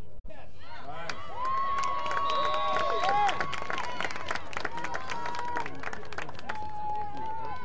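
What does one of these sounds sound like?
Young women cheer and shout on a playing field outdoors.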